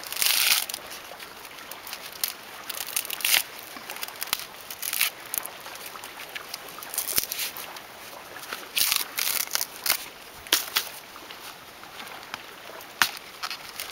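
Dry coconut husk fibres rip and tear as they are pulled apart by hand.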